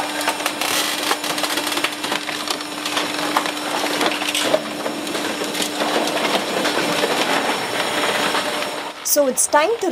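A heavy hydraulic press rumbles and grinds loudly.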